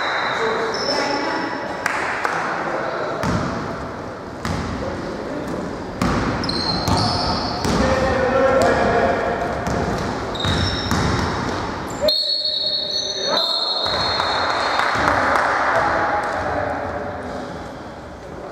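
Players call out to each other across an echoing gym.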